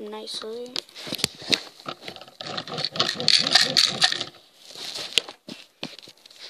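Plastic toy bricks rattle and clatter as they are handled.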